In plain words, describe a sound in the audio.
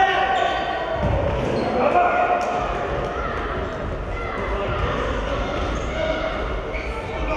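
Sports shoes squeak on a hard floor in a large echoing hall.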